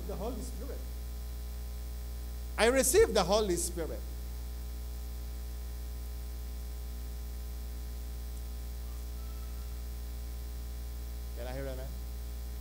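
A middle-aged man speaks with animation into a microphone, in short bursts with long pauses.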